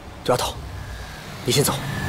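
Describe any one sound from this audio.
A young man speaks firmly.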